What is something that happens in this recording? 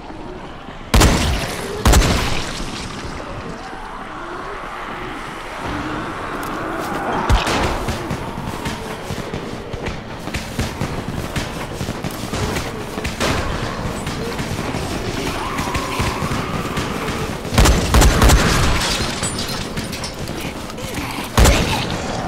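Shotgun blasts ring out loudly, one at a time.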